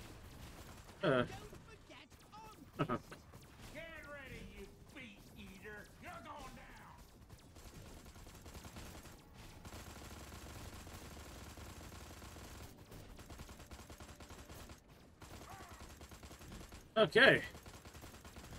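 Explosions boom in short bursts.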